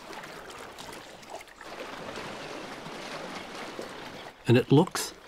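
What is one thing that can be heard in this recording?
Water splashes as a herd of large animals wades through a river.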